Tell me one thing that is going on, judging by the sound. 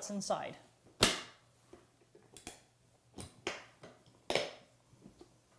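Latches on a hard plastic case snap open with sharp clicks.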